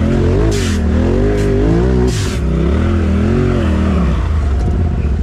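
An off-road vehicle engine revs up and down in quick bursts.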